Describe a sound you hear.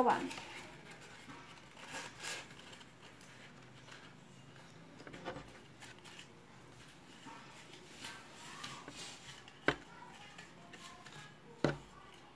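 A leaf rustles as it is folded by hand.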